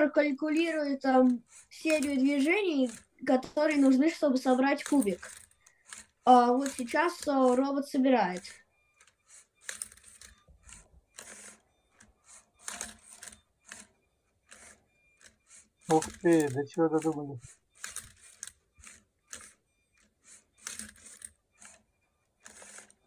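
A small robot motor whirs and clicks as a cube is turned.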